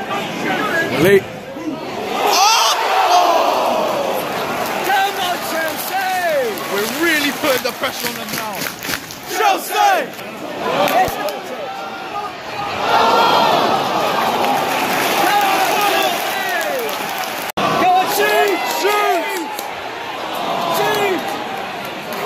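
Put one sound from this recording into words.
A large stadium crowd sings and chants together.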